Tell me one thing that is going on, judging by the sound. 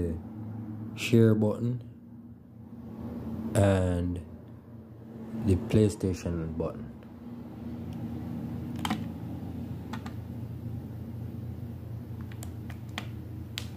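Buttons on a game controller click softly.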